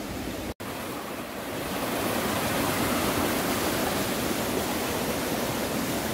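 A stream rushes and splashes steadily over rocks.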